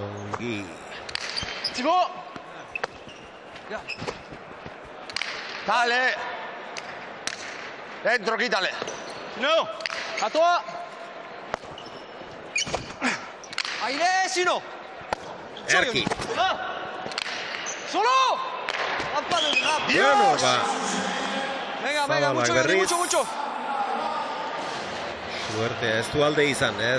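A hard ball smacks loudly against a wall and floor, echoing in a large hall.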